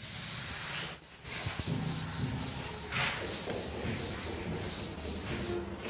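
A duster rubs across a board.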